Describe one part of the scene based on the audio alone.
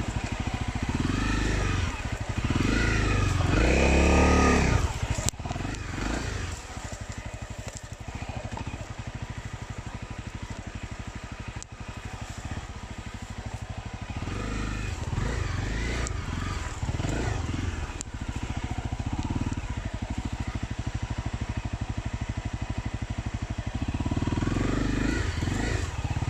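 A dirt bike engine revs up and down in bursts.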